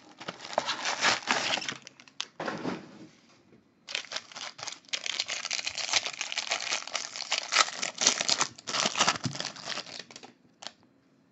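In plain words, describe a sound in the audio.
Crinkly foil wrappers rustle and crackle in someone's hands.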